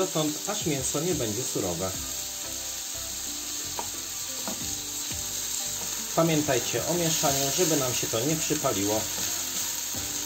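A wooden spatula scrapes and stirs food in a frying pan.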